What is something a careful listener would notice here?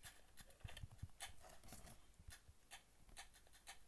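A gun reloads with metallic clicks.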